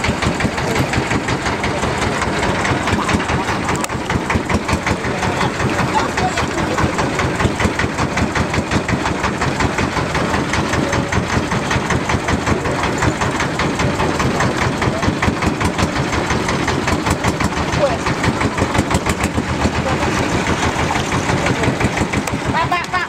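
A boat engine chugs loudly and steadily up close.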